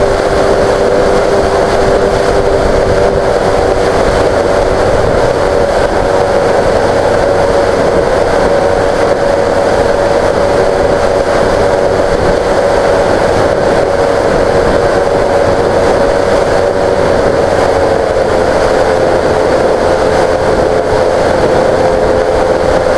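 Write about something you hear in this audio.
An electric motor hums steadily at a high, even pitch.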